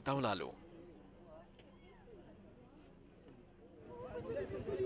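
A crowd of people murmurs outdoors.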